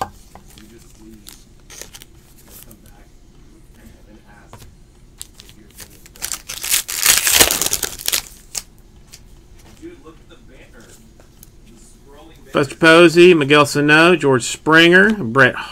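Trading cards click and slide against each other as they are shuffled.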